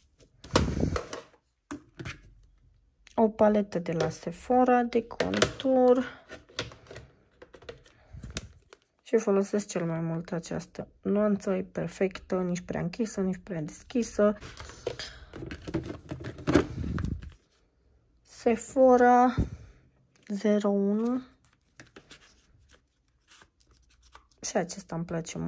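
A plastic compact case clicks and rattles as hands handle it.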